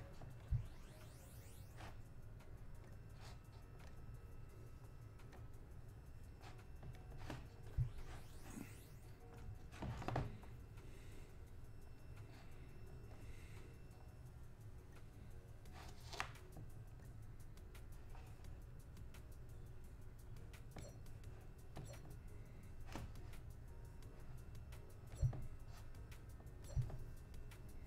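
Short electronic interface clicks and blips sound now and then.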